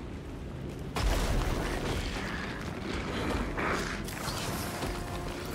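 Leaves and branches rustle as someone pushes through undergrowth.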